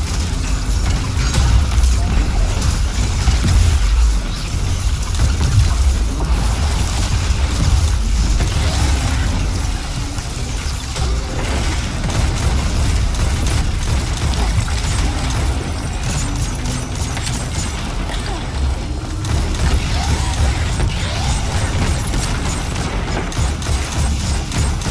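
Gunfire from a video game rifle cracks in rapid bursts.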